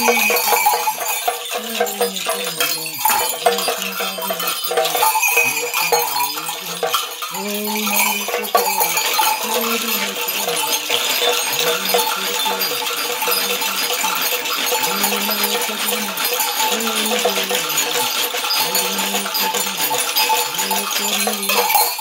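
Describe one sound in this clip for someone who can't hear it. Small bells jingle on a shaken staff.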